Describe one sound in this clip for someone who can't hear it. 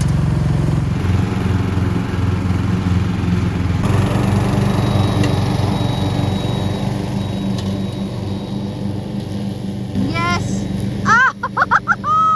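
A ride-on lawn mower engine drones as it cuts grass.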